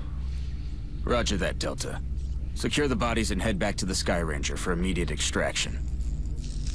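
A man speaks calmly over a radio.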